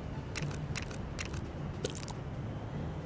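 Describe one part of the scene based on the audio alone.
Short game menu clicks sound several times.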